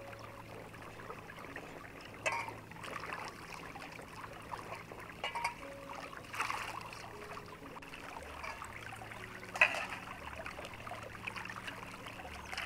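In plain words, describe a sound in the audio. Water splashes and sloshes in metal bowls.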